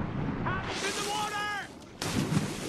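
Water splashes loudly as a swimmer dives in.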